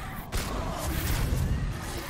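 Gunfire bursts in rapid, sharp shots.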